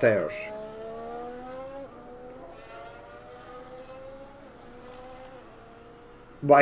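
A racing car engine whines at high revs, rising in pitch through the gears.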